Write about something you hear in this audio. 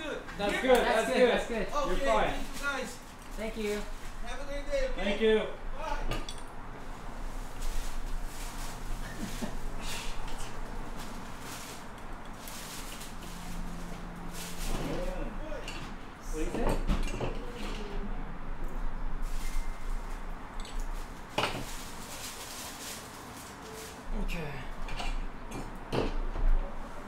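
Metal tools clink and scrape against a wheel.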